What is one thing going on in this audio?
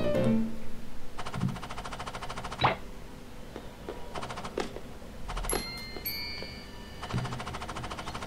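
Bouncy video game music plays.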